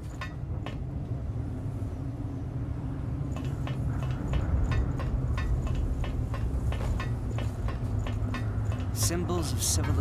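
Metal ladder rungs clank steadily under climbing footsteps.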